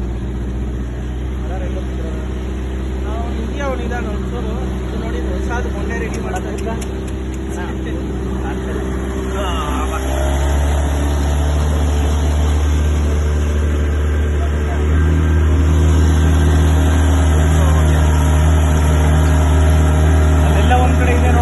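Water splashes against a rubber boat's hull.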